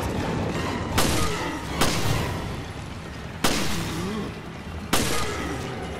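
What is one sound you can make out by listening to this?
Gunshots fire sharply, one at a time.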